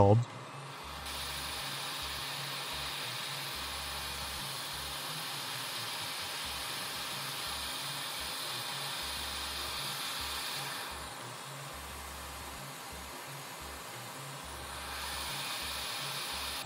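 A hot air blower hisses steadily.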